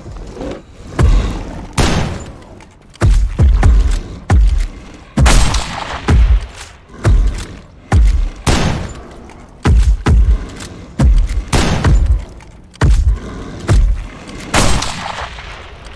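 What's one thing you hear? A rifle fires loud, booming shots again and again.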